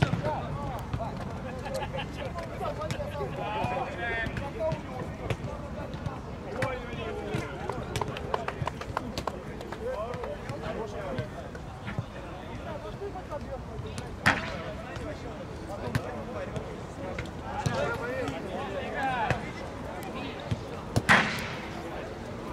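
Men shout and call to each other across an open outdoor pitch.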